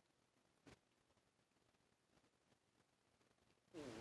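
Bedding rustles softly as a cat stretches.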